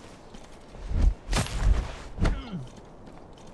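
A heavy body thuds onto a stone floor.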